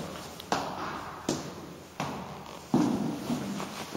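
Footsteps tap on a tiled floor.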